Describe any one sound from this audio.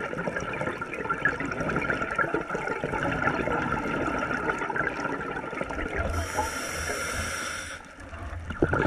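Exhaled air bubbles rumble and gurgle underwater.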